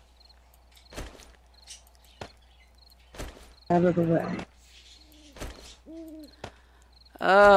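Short soft clicks sound now and then as items are moved.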